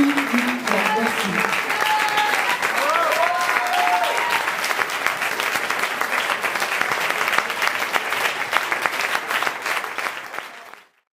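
A crowd claps along in a rhythm in a large echoing hall.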